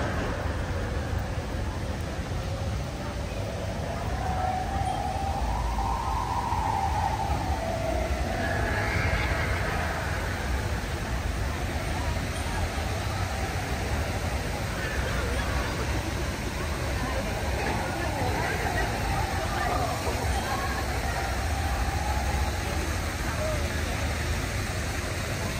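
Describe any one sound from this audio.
A rumble of wind on the microphone runs throughout.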